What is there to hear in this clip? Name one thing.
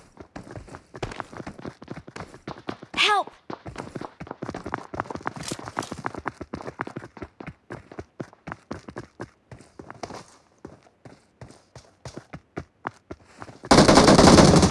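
Footsteps crunch quickly on a hard floor.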